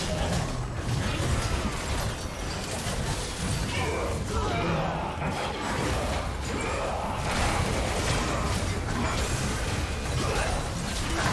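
Magic spells crackle and burst in a fast video game battle.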